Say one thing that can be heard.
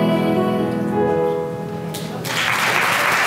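A choir sings together in a large hall.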